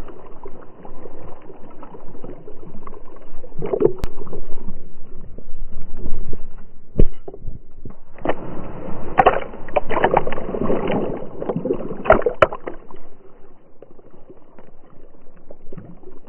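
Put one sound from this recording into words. Water laps and ripples softly as a dog swims.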